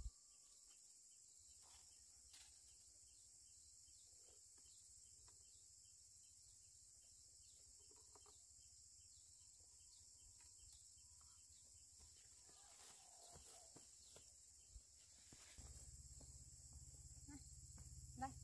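Leaves rustle softly as children walk through low plants.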